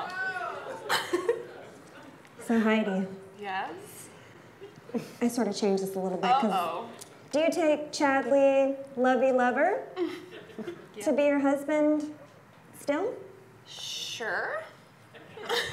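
A young woman speaks calmly into a microphone, reading out.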